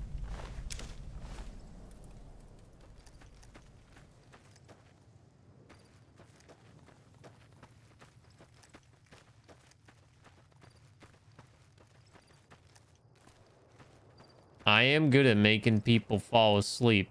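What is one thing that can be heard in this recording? Footsteps crunch softly on gravel at a steady pace.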